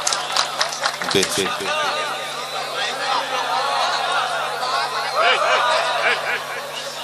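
A crowd murmurs and calls out.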